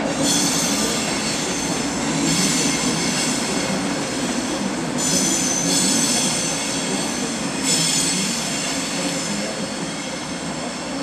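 A train rolls steadily along the rails with a low rumble and a high whine.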